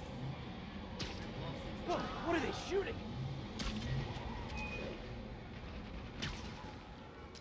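A web shoots out with a sharp swish, again and again.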